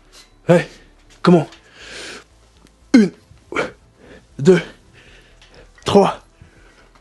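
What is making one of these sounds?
A man grunts loudly with effort, close by, again and again.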